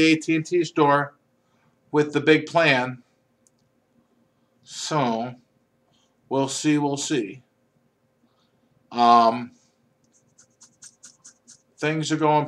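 A man speaks close to a microphone, calmly and in short bursts.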